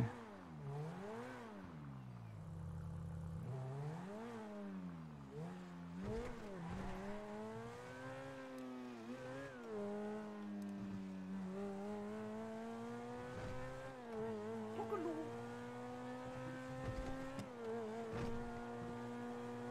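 A sports car engine revs up and down, then roars steadily as the car speeds along.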